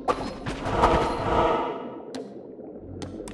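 A loud swelling game whoosh fades away.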